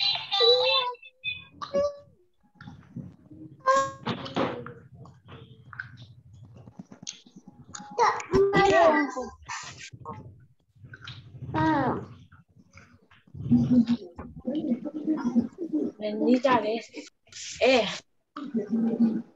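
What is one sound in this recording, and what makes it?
Young children speak and repeat words through an online call.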